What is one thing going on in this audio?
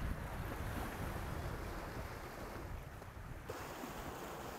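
Small waves wash against a shore.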